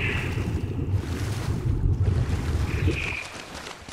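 Water splashes as a swimmer surfaces.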